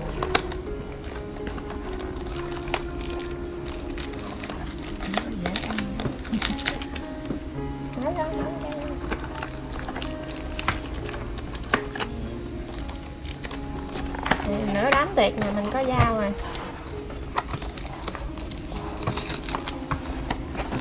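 A cardboard box slides and rustles in hands.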